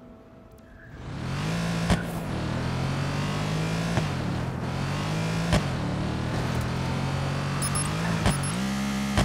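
A car engine roars loudly, revving up and down as gears change.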